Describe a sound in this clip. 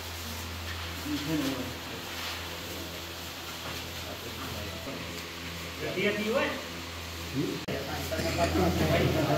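Men talk nearby in calm voices.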